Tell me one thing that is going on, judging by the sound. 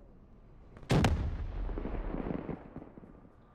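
A rifle fires a short, loud burst of shots.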